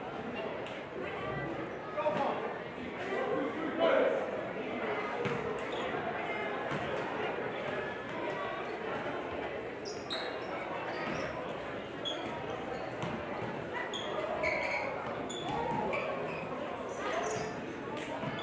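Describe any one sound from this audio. A crowd of young people chatters in a large echoing gym.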